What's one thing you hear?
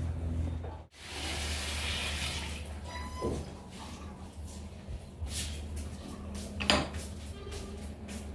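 Milk bubbles and hisses as it boils up in a pan.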